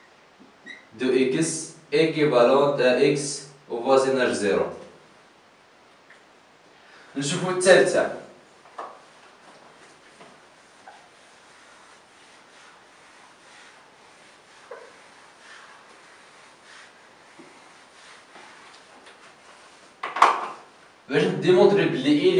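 A man speaks clearly and calmly, close by.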